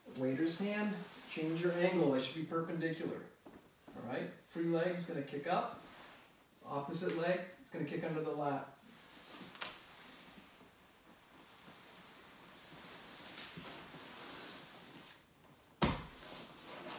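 Bodies shift and rub on a mat.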